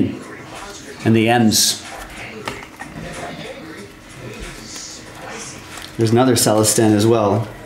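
Plastic card sleeves rustle and click as hands handle them.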